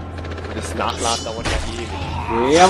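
A blade strikes a body in a quick, violent hit.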